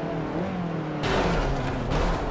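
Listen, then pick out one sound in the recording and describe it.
Cars crash into each other with a heavy thud.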